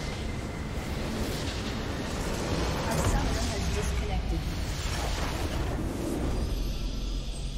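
A crystal structure shatters with a loud crumbling explosion.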